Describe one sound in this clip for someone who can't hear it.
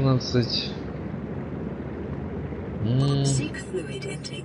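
A young man speaks briefly and casually into a close microphone.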